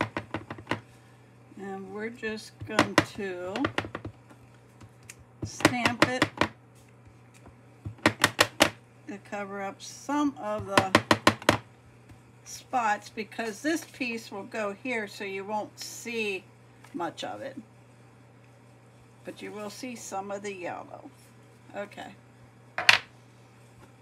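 A rubber stamp taps quickly and repeatedly on an ink pad.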